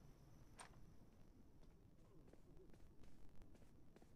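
Soft footsteps tap across a floor.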